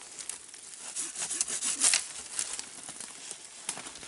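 Branches and leaves rustle as a man pulls at a bush.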